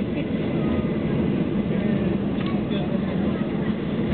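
Another jet roars as it takes off nearby.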